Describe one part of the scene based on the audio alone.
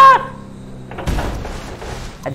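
A car lands hard with a heavy thud.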